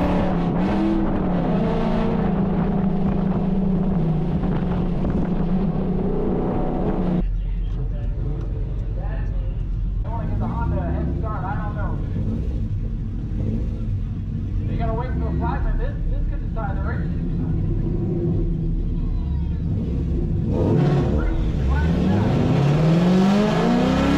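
A car engine rumbles loudly from inside the car.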